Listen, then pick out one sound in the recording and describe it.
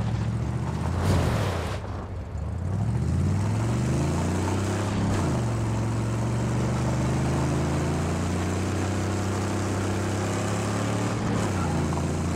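Flames burst from the exhausts with a sharp pop.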